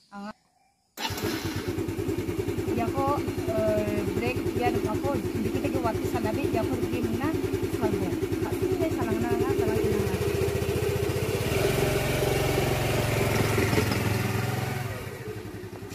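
A scooter engine runs and then pulls away.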